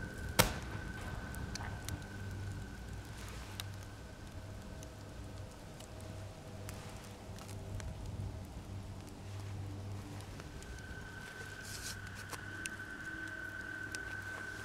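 A knife scrapes and shaves a wooden stick.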